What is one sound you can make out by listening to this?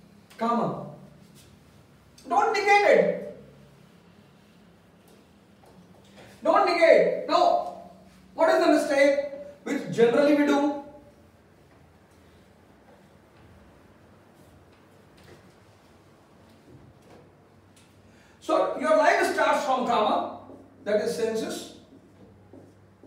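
A man speaks in short bursts, clearly and close by.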